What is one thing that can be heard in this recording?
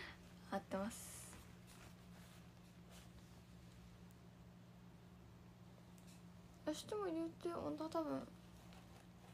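Paper rustles as a tissue is handled.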